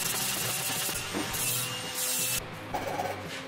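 An angle grinder whines as it grinds metal.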